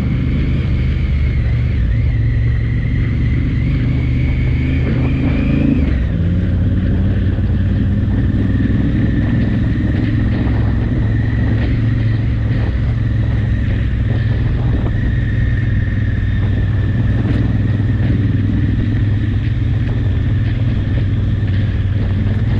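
Tyres crunch over a loose gravel track.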